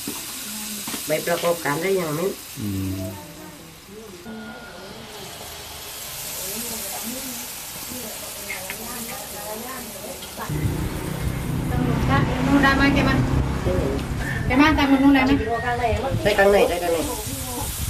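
A middle-aged woman talks with animation, close by.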